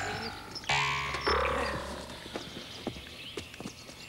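A person lands with a thud on gravel after a jump.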